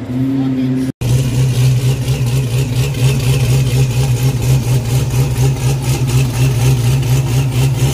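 A car engine idles with a deep, lumpy rumble close by.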